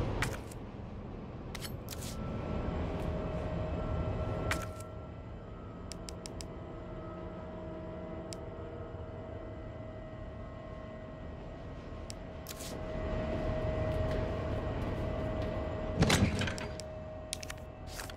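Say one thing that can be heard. Short electronic blips click as menu items are selected.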